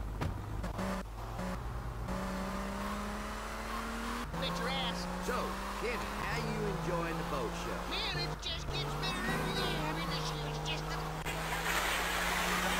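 Music plays from a car radio.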